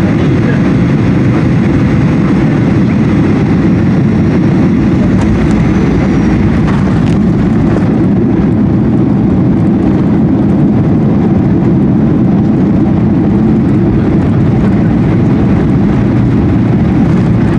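Landing gear rumbles over a runway.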